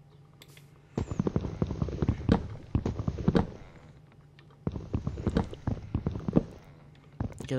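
A tool chops repeatedly at a wooden block with dull knocks.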